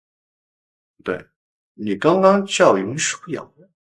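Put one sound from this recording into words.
A young man speaks sharply and closely.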